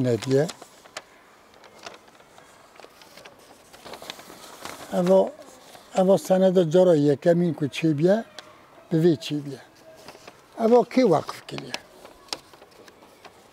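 Paper rustles as an elderly man unfolds a long sheet.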